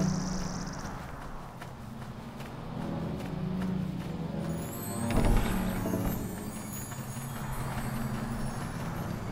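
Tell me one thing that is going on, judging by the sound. Footsteps fall softly on grass at a steady pace.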